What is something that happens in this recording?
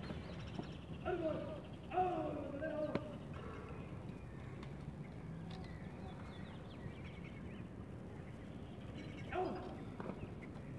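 A man shouts drill commands outdoors.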